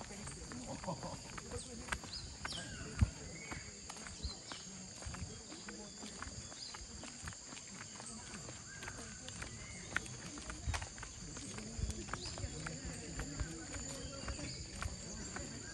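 Footsteps scuff along a paved path outdoors.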